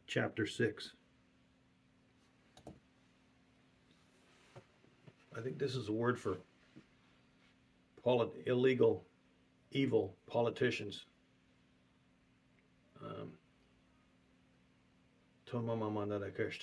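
A middle-aged man speaks calmly in short bursts with pauses, heard through an online call.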